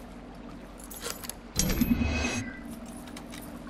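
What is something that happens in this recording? A metal lock clicks and rattles as it is picked.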